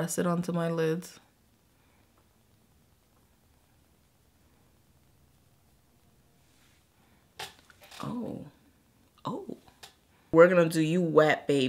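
A woman talks calmly and close to the microphone, with pauses.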